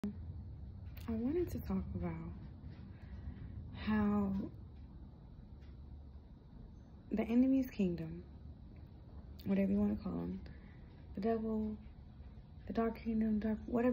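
A young woman talks casually and close by, with pauses.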